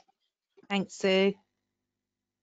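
A woman speaks brightly over an online call.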